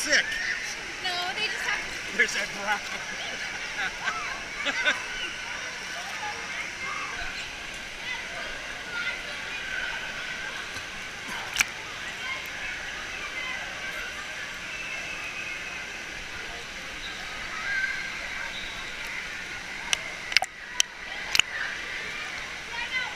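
Children shout and play in a large echoing hall.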